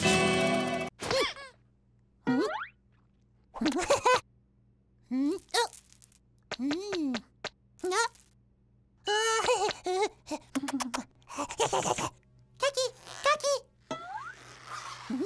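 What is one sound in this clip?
A cartoon chick chirps and squeaks in high, bending cries.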